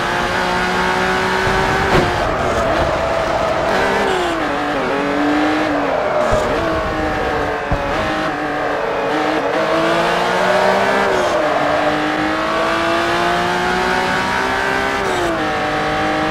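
A racing car engine revs high, its pitch rising and falling with each gear change.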